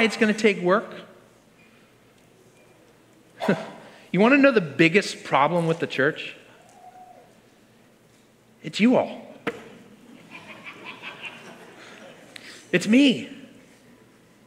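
A man speaks slowly and expressively through a microphone in a large hall, with pauses between phrases.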